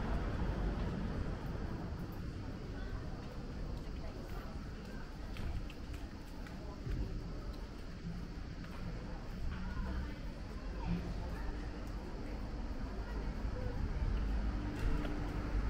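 Distant voices of people murmur outdoors.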